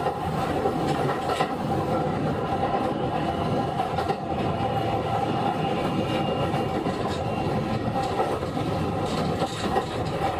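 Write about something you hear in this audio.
A train rumbles steadily along the rails, with wheels clacking now and then.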